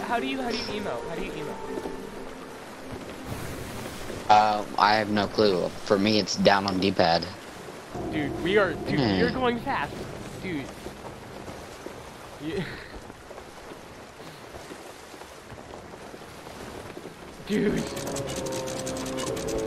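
Waves wash against a sailing ship's hull.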